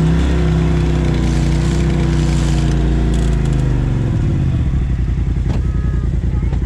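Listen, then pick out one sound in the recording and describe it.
An off-road vehicle engine rumbles loudly close by, then drops to a rough idle.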